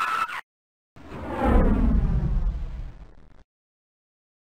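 A car engine roars past and fades away.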